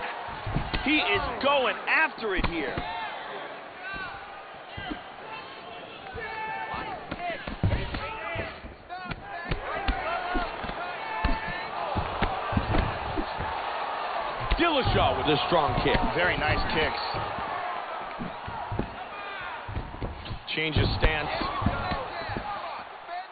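Punches and kicks land with dull thuds.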